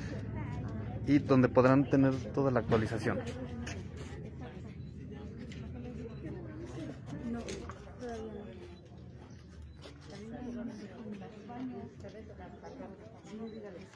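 Several people murmur and talk at a distance outdoors.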